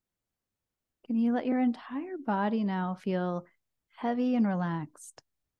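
A young woman speaks softly and calmly close to a microphone.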